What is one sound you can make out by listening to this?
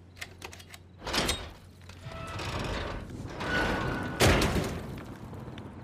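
A heavy metal hatch creaks open and clangs.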